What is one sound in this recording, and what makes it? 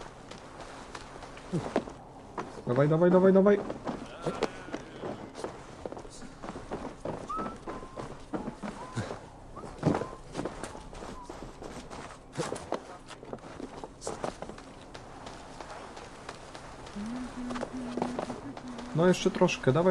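Footsteps thud and patter quickly across wooden rooftops.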